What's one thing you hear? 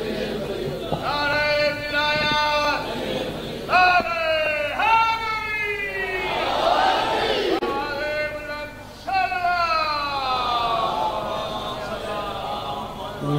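A man chants in a long, melodic voice through a microphone, with echo.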